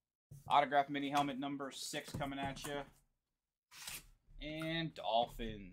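Cardboard flaps bend and rustle as a box is torn open.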